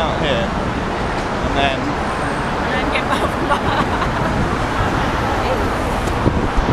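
City traffic rumbles on a busy road below, outdoors.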